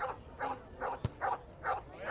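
A boot kicks a ball with a thud.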